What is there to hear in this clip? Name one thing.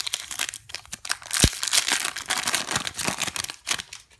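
Glossy trading cards rustle and slide against each other.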